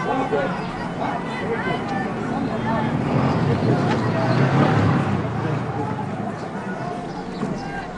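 A crowd of people chatters and calls out in a busy open street.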